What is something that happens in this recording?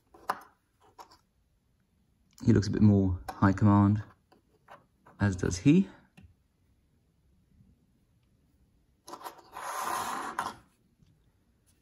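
Small plastic figures click and tap softly on a tabletop.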